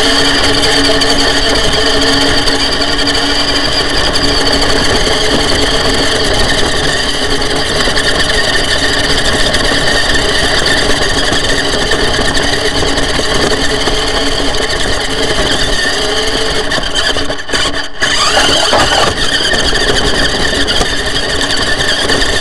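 The electric motor of a remote-control rock crawler whines as it drives.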